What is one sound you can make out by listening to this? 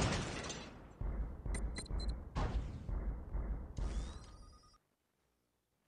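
Heavy robot footsteps clank in a steady rhythm.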